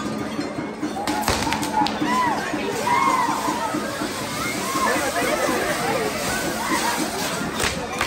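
Whistling fireworks shriek as they spin.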